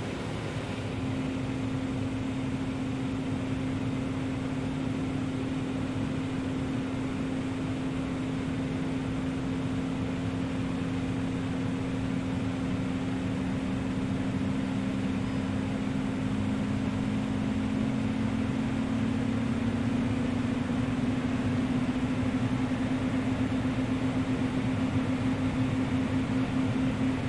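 A propeller engine hums steadily and spins up, its drone slowly rising in pitch.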